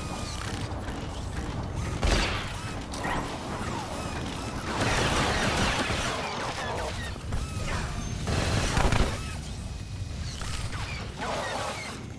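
Blaster shots zap in quick bursts.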